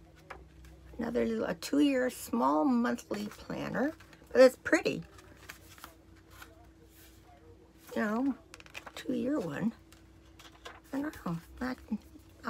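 An elderly woman speaks calmly and close by, in short bursts with pauses.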